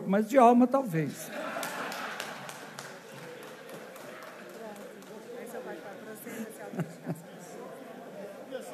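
An elderly man laughs softly.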